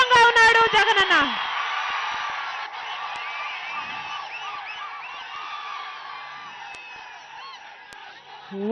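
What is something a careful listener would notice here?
A large outdoor crowd cheers and roars.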